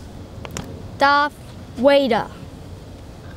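A young boy speaks close by in short bursts.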